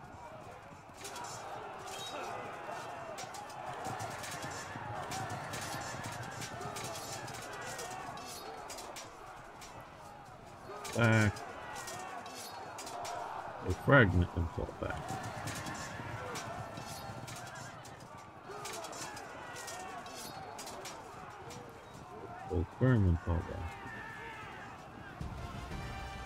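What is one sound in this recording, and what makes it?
Weapons clash and clang in a large battle.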